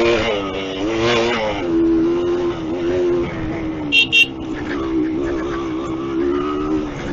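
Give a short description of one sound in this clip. A motorcycle engine hums steadily, its pitch rising and falling slightly.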